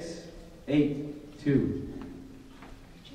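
A man speaks through a microphone and loudspeaker in a large room.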